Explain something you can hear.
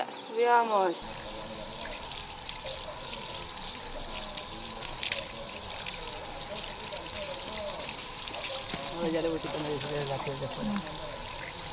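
Water trickles and splashes onto the ground.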